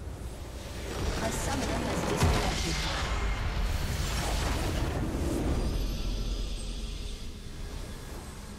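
A huge explosion booms and rumbles, then slowly fades.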